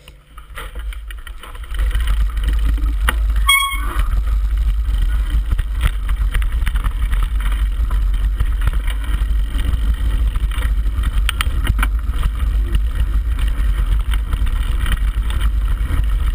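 Bike tyres crunch and rattle over a gravel trail.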